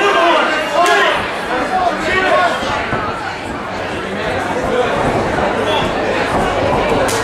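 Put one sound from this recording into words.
A crowd of men and women shouts and cheers loudly nearby.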